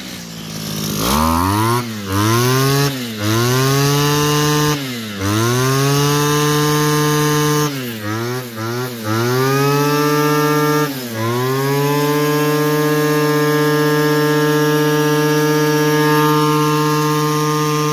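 A small two-stroke engine revs up and drops back again and again, then holds a steady high whine close by.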